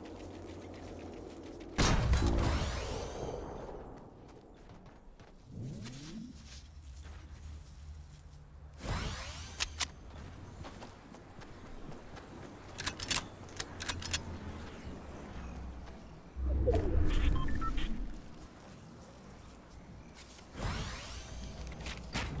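Wooden walls clack into place as they are built quickly.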